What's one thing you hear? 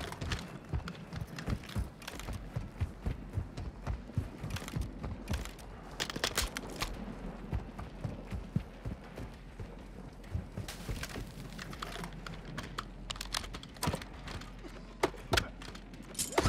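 Footsteps thud quickly on dirt and rock.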